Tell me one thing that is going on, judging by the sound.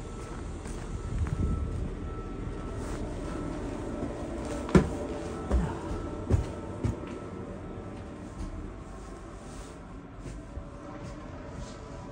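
A low, steady rumble hums throughout.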